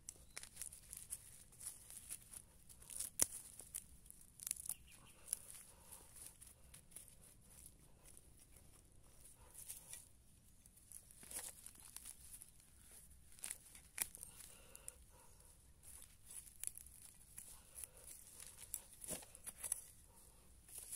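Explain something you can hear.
A small hand trowel scrapes and digs into soil.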